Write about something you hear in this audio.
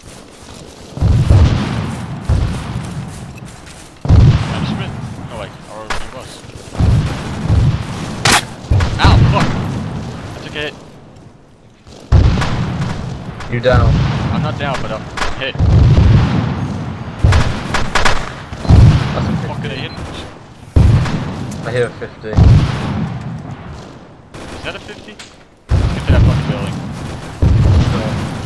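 Heavy gunshots boom and echo across open ground.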